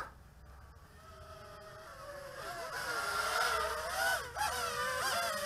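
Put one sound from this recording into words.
A small drone whines overhead, its motor pitch wavering up and down.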